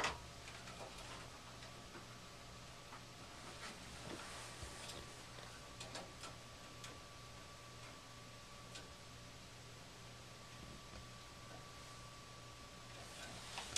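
Wires and a metal tool click and tap as they are handled.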